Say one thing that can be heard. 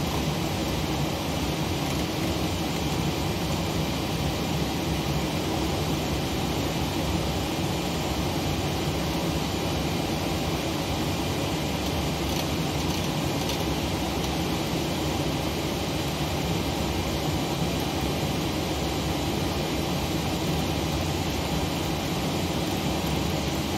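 An aircraft's cockpit systems hum with a steady low drone.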